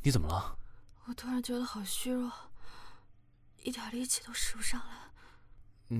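A young woman speaks weakly, close by.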